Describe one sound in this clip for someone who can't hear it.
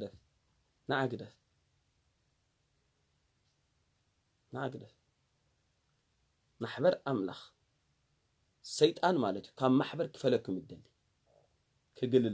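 A man speaks calmly and close by, in short bursts with pauses.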